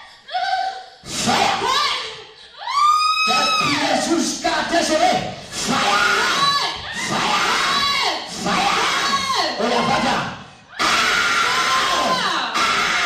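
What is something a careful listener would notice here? A man shouts with animation through a microphone and loudspeakers in a large echoing hall.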